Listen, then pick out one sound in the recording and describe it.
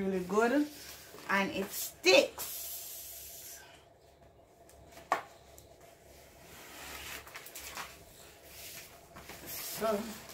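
Card paper rustles and slides on a hard floor.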